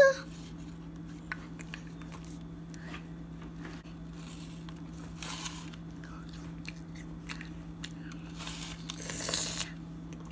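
A young girl crunches into an apple.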